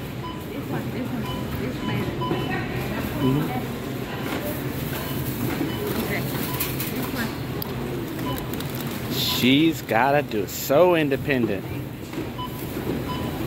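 A checkout scanner beeps now and then.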